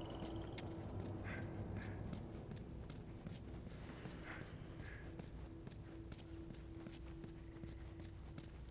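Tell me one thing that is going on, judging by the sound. Footsteps crunch on gravel and leaves.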